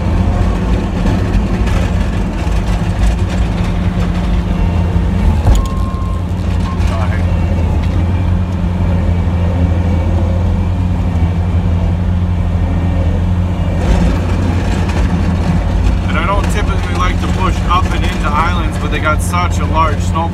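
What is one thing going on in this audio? A snow plough blade scrapes over pavement.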